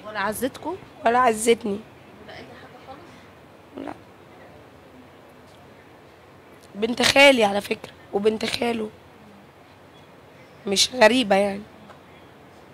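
A woman speaks calmly into a microphone close by, in short phrases with pauses.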